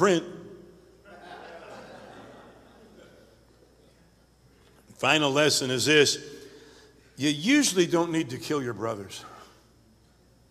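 An older man speaks with emphasis into a microphone, his voice echoing in a large hall.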